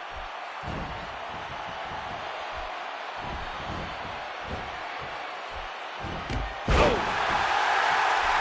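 A crowd cheers and roars steadily in a large arena.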